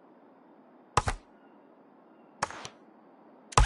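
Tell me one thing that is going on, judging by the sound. Short menu clicks sound.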